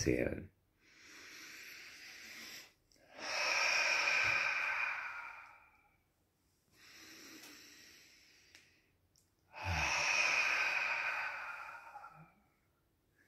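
An elderly man laughs breathily close by.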